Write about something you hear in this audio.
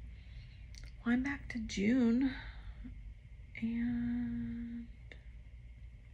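A woman speaks briefly and calmly close by.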